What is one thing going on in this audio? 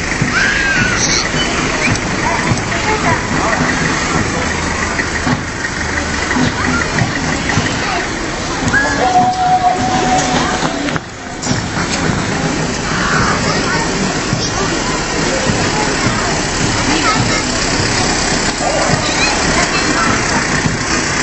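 Truck engines rumble slowly past, close by.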